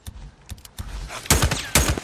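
A rifle fires several quick shots.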